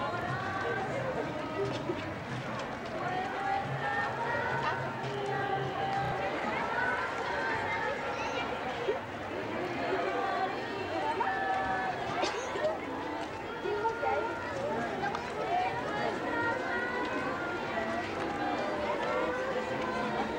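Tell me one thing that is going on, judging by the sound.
A large crowd of men and women murmurs and chatters outdoors.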